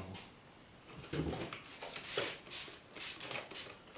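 A spray bottle hisses in short squirts.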